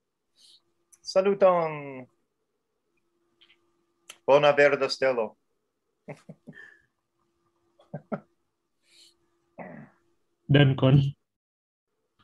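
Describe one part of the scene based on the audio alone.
An elderly man speaks and laughs over an online call.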